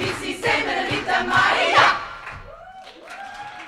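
A choir of women sings loudly through microphones and then stops abruptly.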